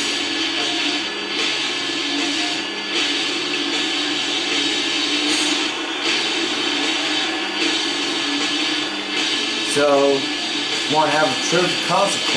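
A crowd cheers and roars loudly through a television speaker.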